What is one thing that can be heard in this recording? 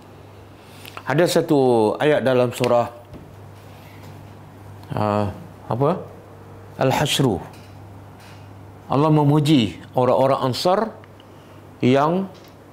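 A middle-aged man speaks calmly in short phrases, as if explaining a lesson.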